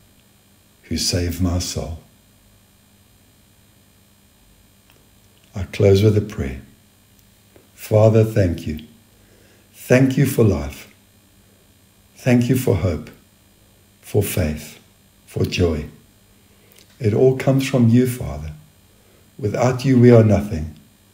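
A man speaks calmly in short phrases with long pauses.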